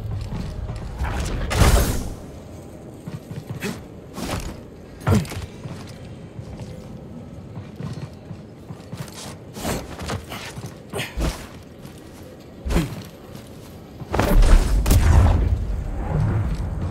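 A powerful whoosh blasts out as heavy machinery is shoved through the air.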